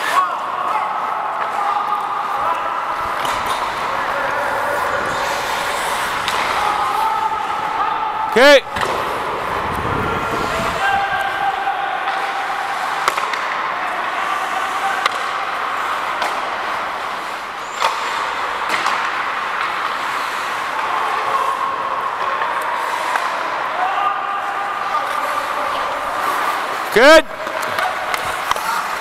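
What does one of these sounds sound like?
Players call out to each other across the rink.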